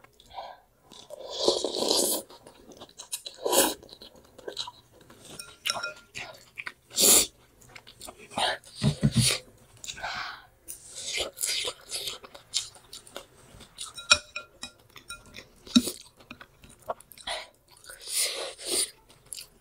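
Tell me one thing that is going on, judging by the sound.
A young woman slurps noodles close to the microphone.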